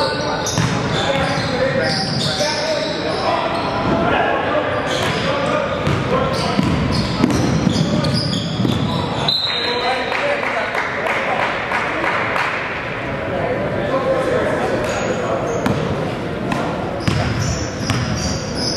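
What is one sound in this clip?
A basketball thuds as it bounces in a large echoing gym.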